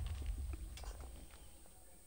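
A pickaxe chips at stone blocks with quick clicks.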